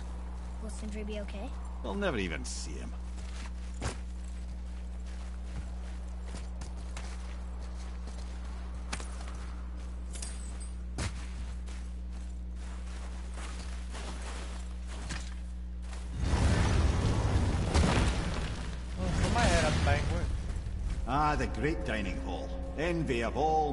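Footsteps crunch on snow and rock.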